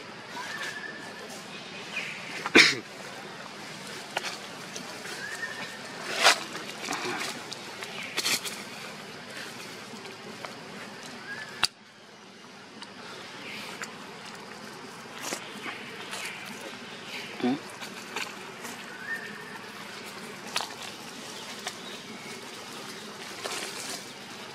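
Dry leaves rustle as monkeys shift on the ground.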